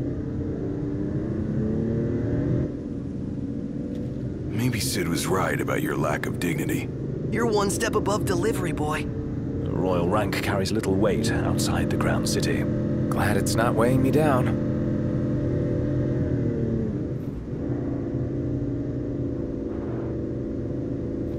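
A car engine hums steadily as a car drives along.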